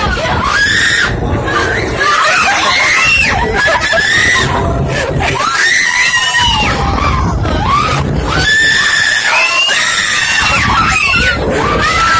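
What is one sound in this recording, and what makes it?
Young riders scream and shriek loudly.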